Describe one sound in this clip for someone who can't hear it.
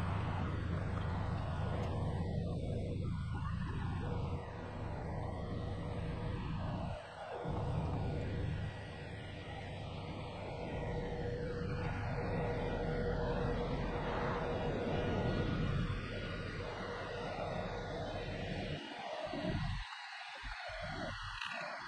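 Wind blows across the open ground outdoors.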